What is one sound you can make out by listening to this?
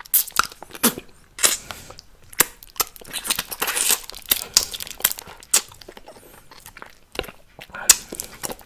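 A man makes wet mouth sounds very close to a microphone.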